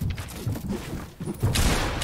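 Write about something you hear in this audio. A pickaxe thuds against wood.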